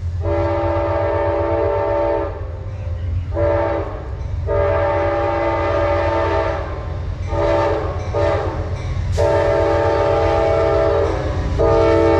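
A train horn blows loud, long blasts, drawing closer.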